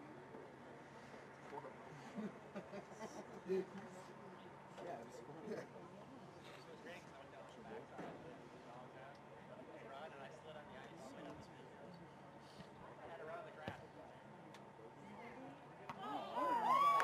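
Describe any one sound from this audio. Distant players call out faintly across an open field.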